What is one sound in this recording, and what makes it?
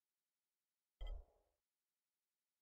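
A short menu click sounds once, with a brief low thump.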